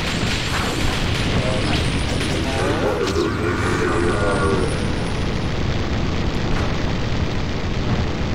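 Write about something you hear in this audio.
Fire spells roar and crackle in a game battle.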